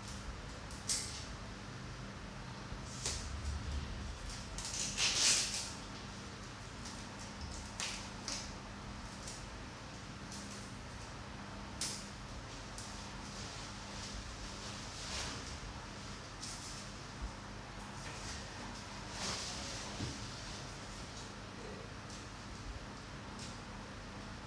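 Plastic and metal parts click and rattle close by.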